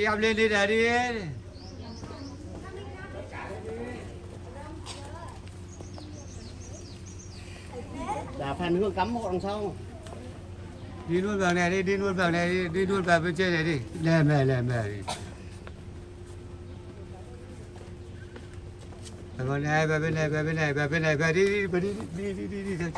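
A woman sings close by.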